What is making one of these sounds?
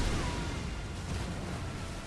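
A young man shouts excitedly near a microphone.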